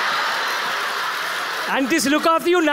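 An audience laughs and murmurs.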